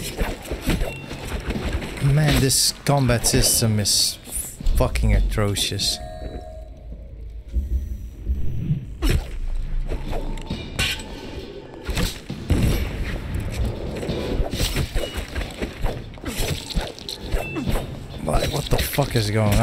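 Swords clash and ring.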